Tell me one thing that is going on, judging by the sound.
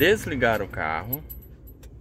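A key turns in a car's ignition.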